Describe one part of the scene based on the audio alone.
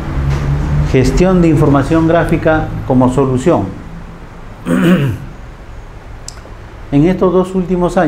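A man lectures through a microphone in a room.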